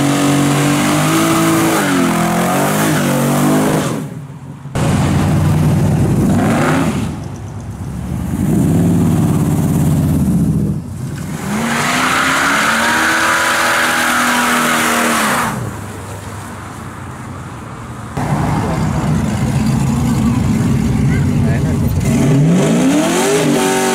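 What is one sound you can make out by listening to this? A loud car engine roars and revs up and down.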